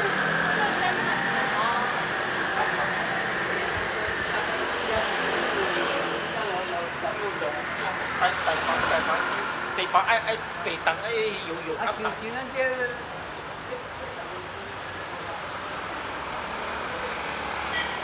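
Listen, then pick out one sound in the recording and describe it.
Distant street traffic hums.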